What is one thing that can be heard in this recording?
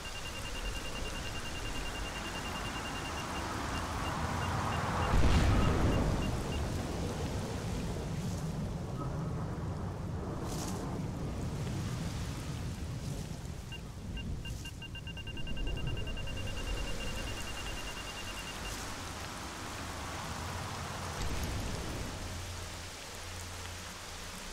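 Footsteps tread steadily over ground and grass.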